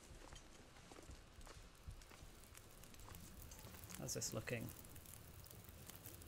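A fire crackles softly in a metal barrel.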